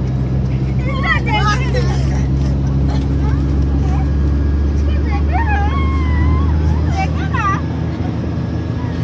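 A young boy talks and laughs close by.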